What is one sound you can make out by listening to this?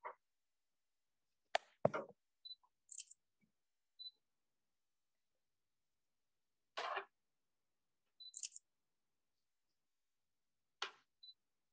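A sheet of paper rustles briefly as it is handed over.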